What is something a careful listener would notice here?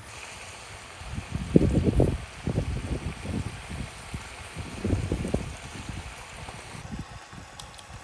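Raw meat splashes into a pan of water.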